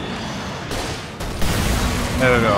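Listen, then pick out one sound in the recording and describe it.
A gun fires with a loud bang.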